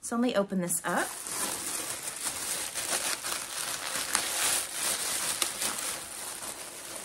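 A plastic mailer bag crinkles and rustles as it is torn open.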